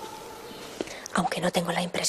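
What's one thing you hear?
A woman speaks softly and close.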